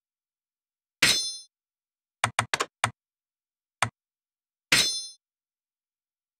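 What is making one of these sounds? A bright chime rings as an item is selected.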